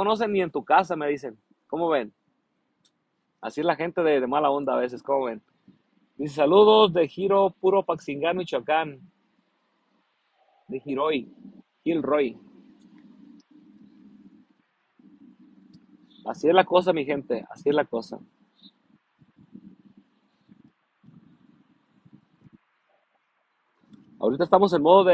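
A man talks warmly and close up, with pauses.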